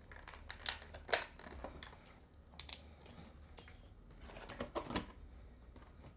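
Plastic packaging crinkles and clicks as hands open it.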